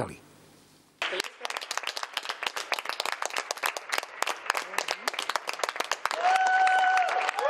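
Many people clap outdoors, with the sound echoing off the buildings.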